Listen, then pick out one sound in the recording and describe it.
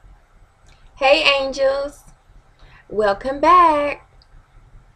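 A young woman speaks softly and close up, in a sing-song way.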